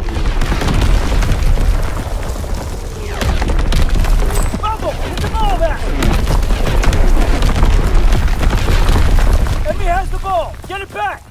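Explosions rumble heavily nearby.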